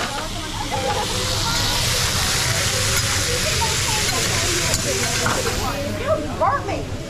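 Meat sizzles loudly on a hot griddle.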